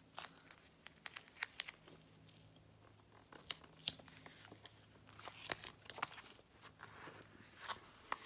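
Paper slides and taps on a hard surface.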